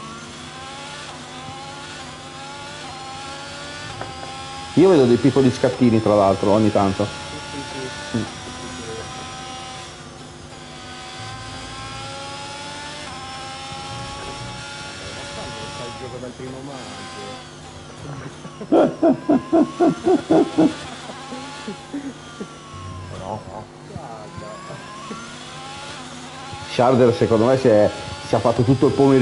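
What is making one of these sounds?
A racing car engine whines and revs up and down through the gears.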